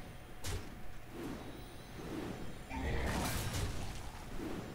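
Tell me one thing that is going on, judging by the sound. Game effects thump and crash as cards clash.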